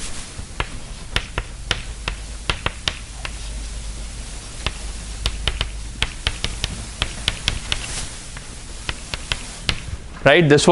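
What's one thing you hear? Chalk taps and clicks against a blackboard.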